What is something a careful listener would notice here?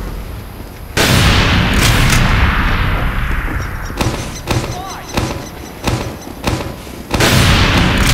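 A sniper rifle fires with a loud, echoing boom.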